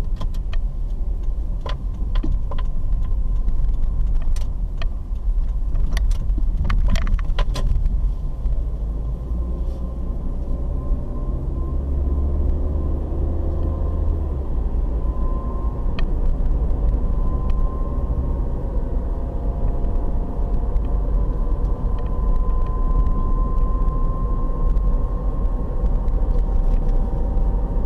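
A car engine hums steadily from inside, rising and falling in pitch.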